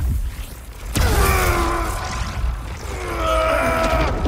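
Electricity crackles and buzzes loudly with a rising whine.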